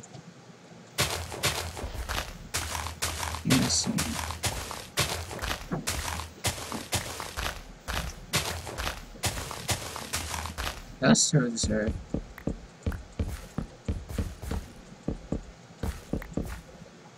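Blocks of dirt crunch rapidly as they are dug.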